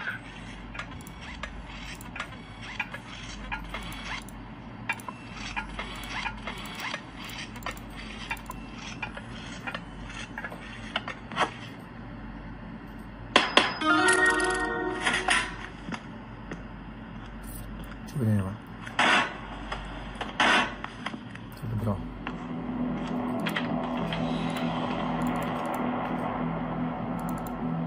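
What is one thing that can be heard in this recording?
Game sound effects and music play from a small tablet speaker.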